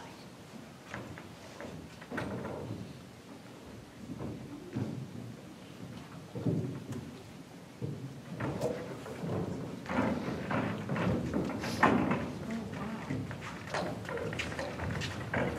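A young man speaks in a hall with some echo.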